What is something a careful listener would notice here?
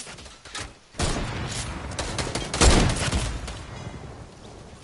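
A sniper rifle fires with a loud boom in a video game.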